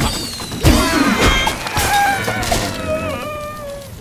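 A cloud of smoke bursts with a loud whoosh.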